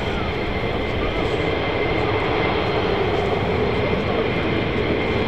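A jet engine roars and whines steadily nearby.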